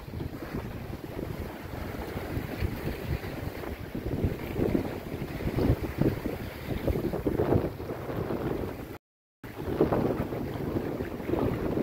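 Waves slap against a sailboat's hull.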